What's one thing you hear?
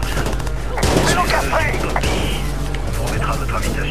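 A car crashes with a loud bang and metal crunching.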